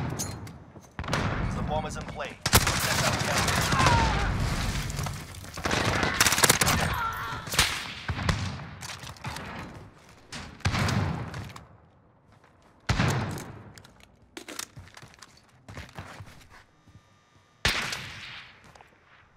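Gunfire rattles in sharp bursts.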